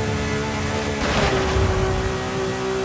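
A car engine briefly drops in pitch as a gear shifts.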